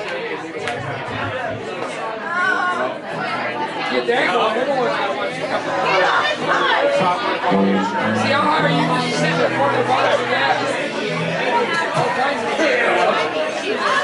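An acoustic guitar strums along.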